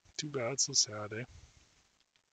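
A man speaks briefly and with animation, close to a microphone.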